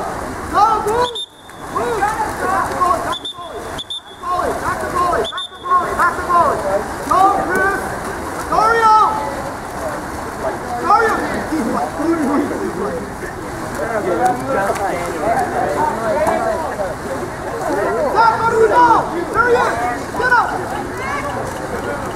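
Water splashes as swimmers thrash in a pool.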